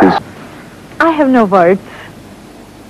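A young woman speaks happily, close by.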